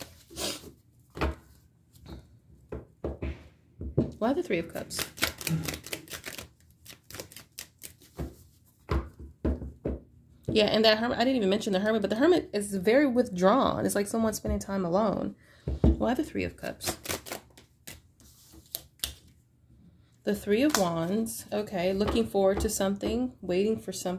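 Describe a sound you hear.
Playing cards are shuffled, with quick soft flicks and taps.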